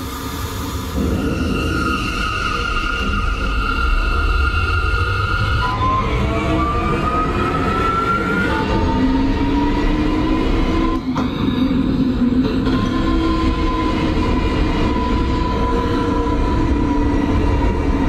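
Train wheels rumble and clatter along the rails in a tunnel.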